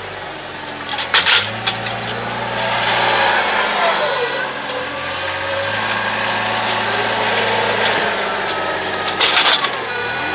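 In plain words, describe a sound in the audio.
A metal clamp clanks against a hay bale.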